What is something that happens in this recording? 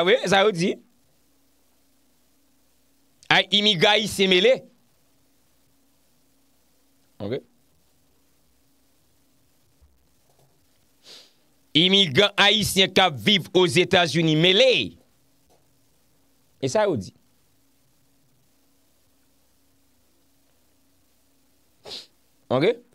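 A young man speaks calmly and close into a microphone, in short bursts with pauses.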